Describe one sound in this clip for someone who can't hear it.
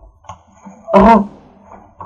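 A sword strikes with a sharp clang.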